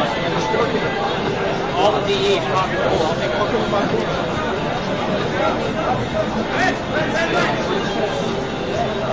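Keys clatter on a computer keyboard.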